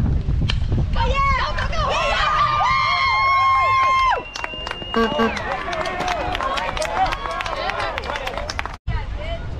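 A crowd of children and adults cheers and shouts excitedly outdoors.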